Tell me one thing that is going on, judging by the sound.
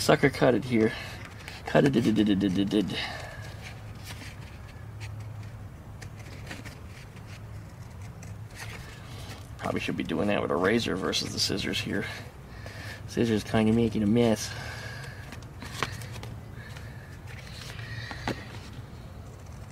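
Scissors snip through stiff paper.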